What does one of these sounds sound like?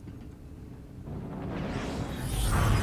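A spaceship roars past with a rising whoosh.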